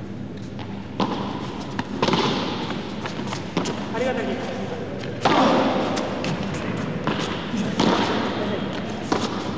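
A ball is struck sharply with a racket, again and again.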